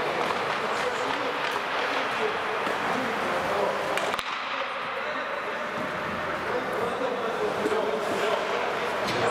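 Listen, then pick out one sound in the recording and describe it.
Ice skates scrape across the ice in a large echoing arena.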